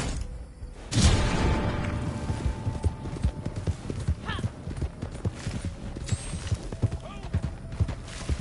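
A horse's hooves pound rapidly on dry ground at a gallop.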